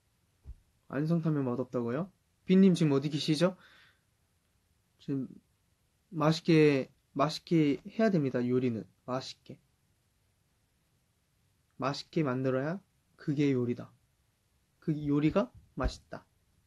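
A young man speaks calmly and casually close to a microphone.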